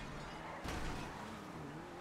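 Car tyres screech in a skid.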